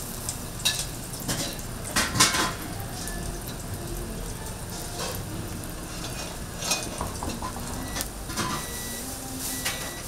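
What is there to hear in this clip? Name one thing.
Slices of meat sizzle and crackle on a hot griddle.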